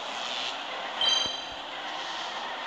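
A bright electronic chime rings briefly.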